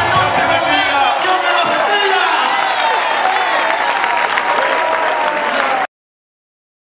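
A large crowd screams and cheers loudly in an echoing hall.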